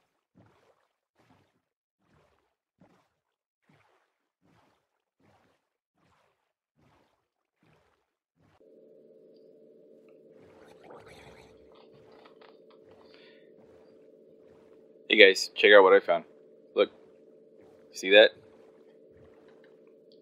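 Oars paddle and splash softly in water.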